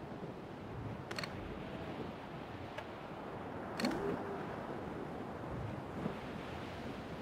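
Wind blows steadily over open sea.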